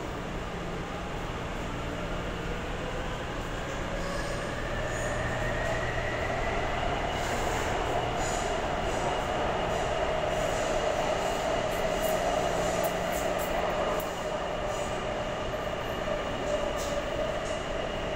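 A train's motor whines, rising in pitch as it speeds up.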